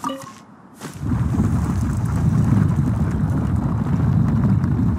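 A deep magical rumble starts suddenly and hums on steadily.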